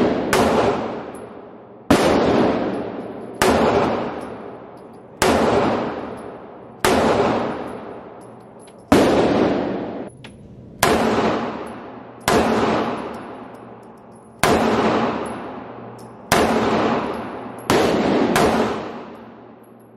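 A pistol fires loud single shots, one every second or two, each ringing out in an echoing room.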